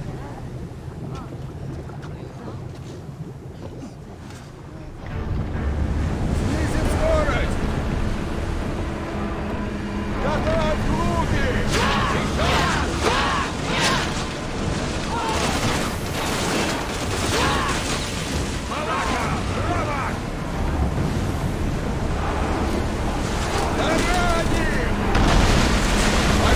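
Waves splash and rush against a ship's hull.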